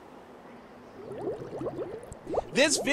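Bubbles burble and pop.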